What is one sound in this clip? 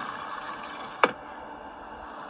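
Glass cracks with a sharp crash.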